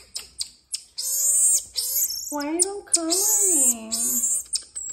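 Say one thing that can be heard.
A marmoset gives high-pitched trilling calls.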